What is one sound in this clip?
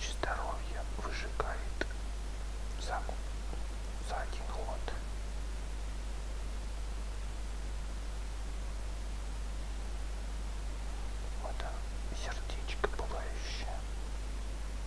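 A man speaks calmly and quietly into a close microphone.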